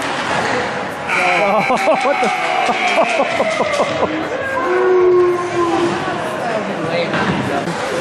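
A crowd of spectators suddenly cheers and shouts loudly.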